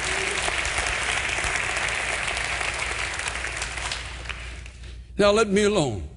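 A large audience applauds in a big hall.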